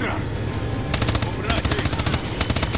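A rifle fires rapid bursts close by.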